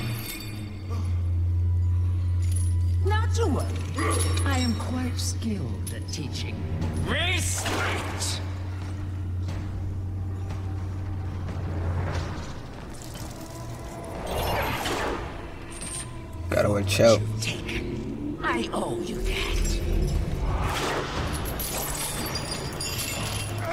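Chains whip and rattle through the air.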